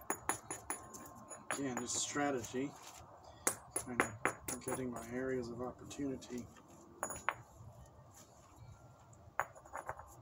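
Stone strikes stone with sharp clicks and taps.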